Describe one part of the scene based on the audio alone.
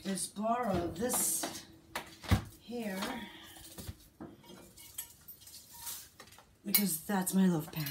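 Glass jars clink against a countertop.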